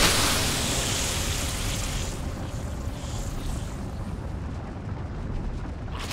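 A large swarm of creatures skitters across the ground.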